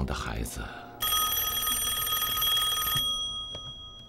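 An old telephone bell rings loudly.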